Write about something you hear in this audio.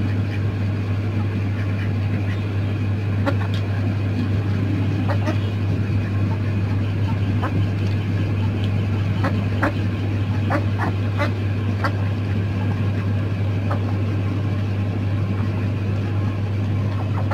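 Chickens cluck softly.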